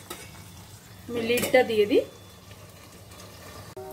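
A metal lid clatters onto a pan.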